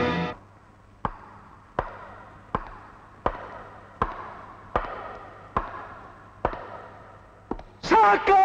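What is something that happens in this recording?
Footsteps echo slowly and evenly in a large stone hall.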